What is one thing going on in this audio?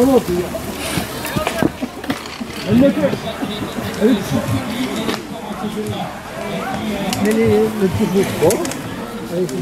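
A man and a woman talk nearby.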